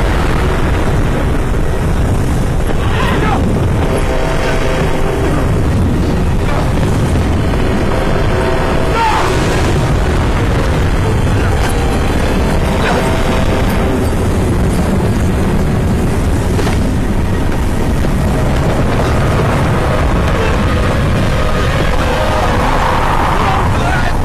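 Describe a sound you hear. Strong wind roars and howls steadily outdoors.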